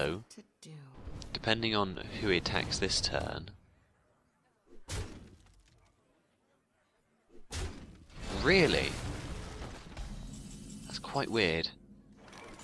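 Game spell effects whoosh and burst with bright chimes.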